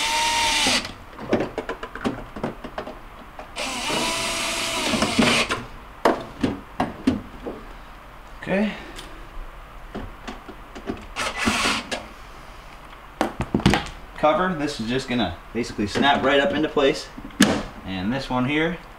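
Plastic parts click and knock.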